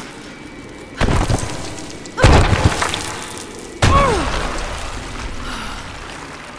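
Rocks crash down in heavy, rumbling thuds.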